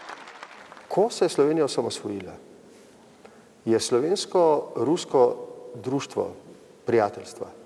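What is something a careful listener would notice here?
A middle-aged man speaks calmly and close up.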